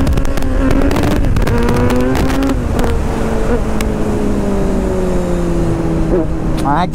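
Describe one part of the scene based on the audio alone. A motorcycle engine revs and roars up through the gears.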